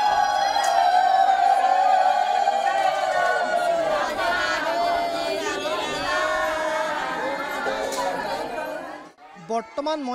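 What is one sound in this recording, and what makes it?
A group of elderly women chant loudly together.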